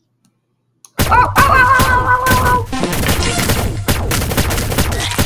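A toy blaster fires rapid shots.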